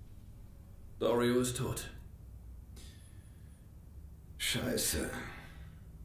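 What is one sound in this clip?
A second man answers in a firm voice.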